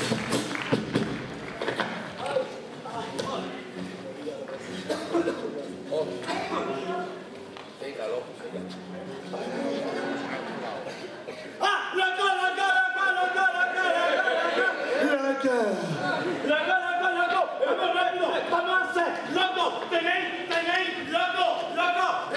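A group of men and women sing together loudly.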